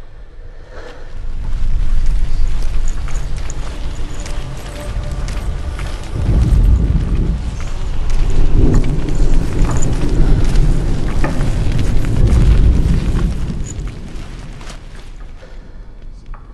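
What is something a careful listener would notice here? A fire crackles and pops nearby.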